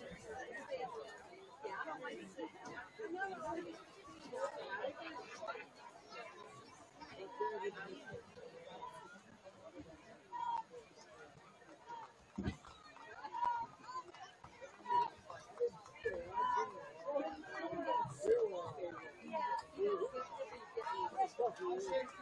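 A crowd of spectators chatters in the distance outdoors.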